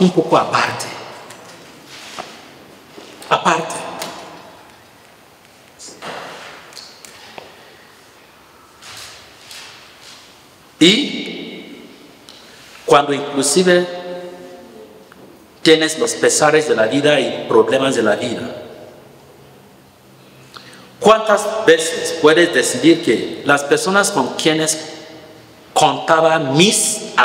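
A man speaks calmly into a microphone, with pauses, in an echoing room.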